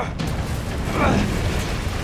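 Flames roar in a sudden burst.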